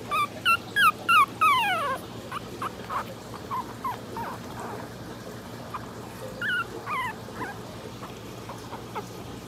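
Puppies whimper and squeal with high, sliding cries.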